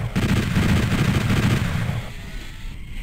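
A heavy machine gun fires in a rapid, booming stream.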